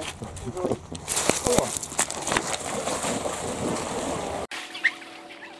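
A dog splashes through shallow water.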